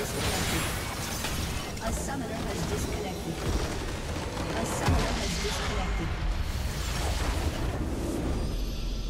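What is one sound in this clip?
Magic spells crackle and whoosh in a game fight.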